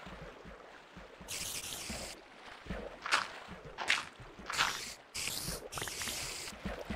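Footsteps crunch on gravel and stone at a steady walking pace.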